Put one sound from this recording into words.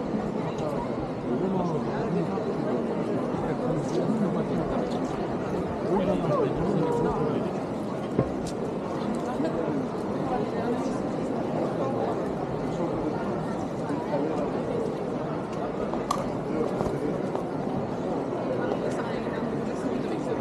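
A crowd of people chatters in a busy street outdoors.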